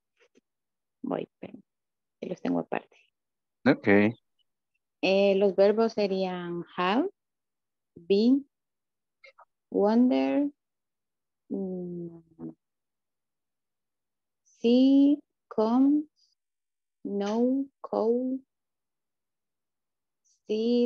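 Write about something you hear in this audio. A woman sings slowly, line by line, over an online call.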